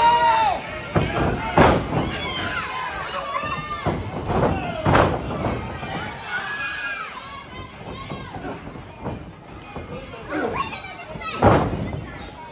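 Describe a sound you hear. A body slams hard onto a ring mat with a loud thud.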